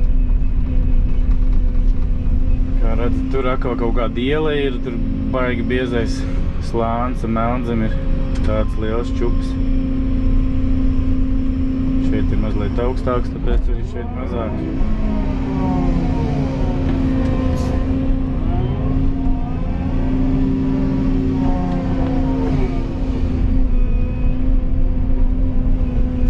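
A diesel tracked excavator engine drones, heard from inside the cab as the machine travels.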